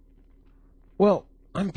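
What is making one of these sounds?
A middle-aged man speaks close into a microphone.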